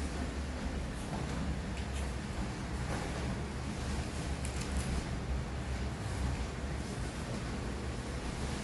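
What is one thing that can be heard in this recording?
Bare feet thump and shuffle on a padded floor.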